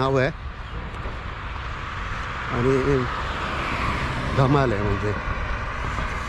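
A middle-aged man speaks calmly close by, outdoors.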